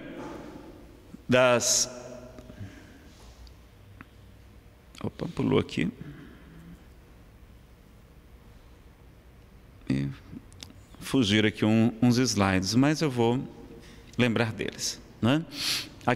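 A man speaks calmly into a microphone, heard through a loudspeaker in an echoing room, with pauses.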